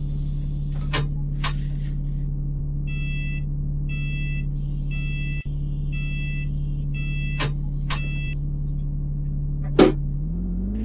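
Switches on a dashboard click sharply.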